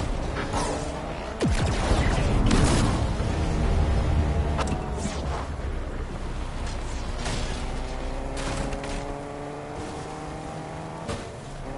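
A car engine roars and revs as the car speeds along.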